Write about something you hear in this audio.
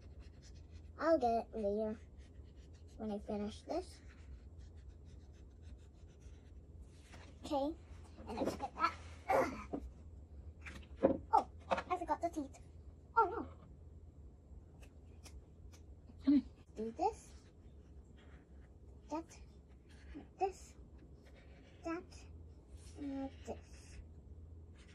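A young girl speaks softly and close by, in short bursts.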